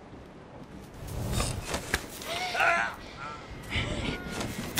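A young woman snarls and screams close by.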